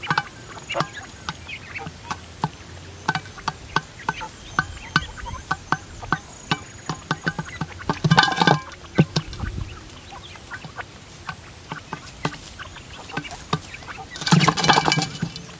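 Grain trickles from a pipe onto a metal tray.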